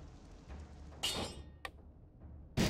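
Menu selections click softly in a video game.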